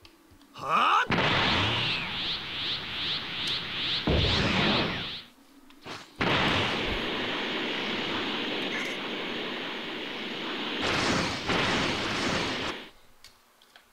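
An energy aura roars and crackles loudly.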